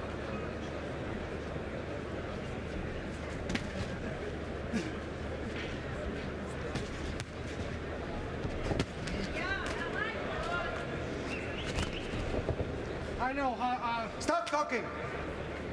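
A large crowd murmurs and cheers steadily in a big echoing hall.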